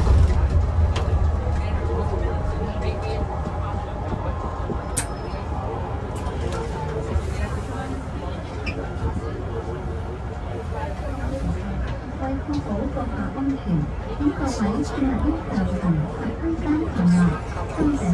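A bus engine hums low and steady inside the cabin.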